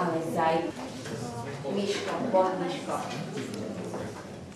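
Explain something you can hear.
A young boy speaks softly and hesitantly close to a microphone.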